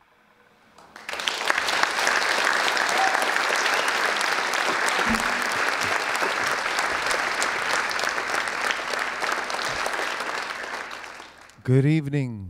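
An audience applauds steadily in a hall.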